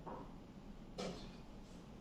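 A chess piece is set down with a sharp wooden knock.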